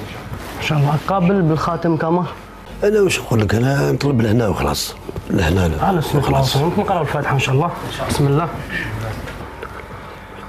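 A middle-aged man talks with animation nearby.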